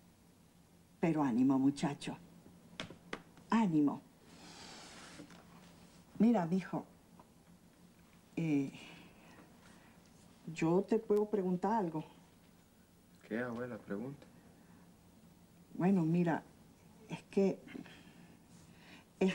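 An elderly woman speaks calmly and earnestly, close by.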